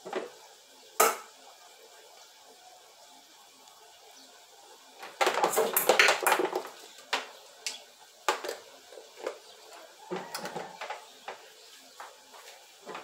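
Plastic clicks and knocks.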